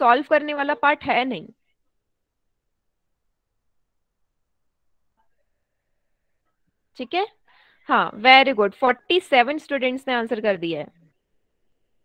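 A young woman speaks calmly into a headset microphone, explaining.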